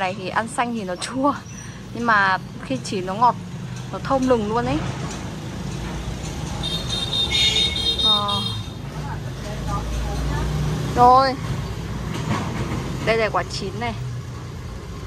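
A man calls out loudly from nearby outdoors.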